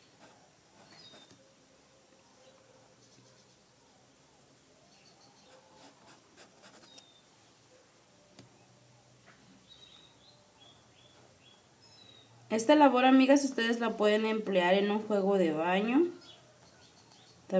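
A paintbrush dabs on stretched fabric.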